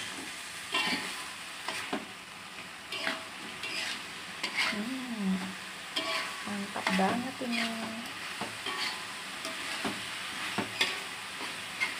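A metal spatula scrapes and clatters against a wok.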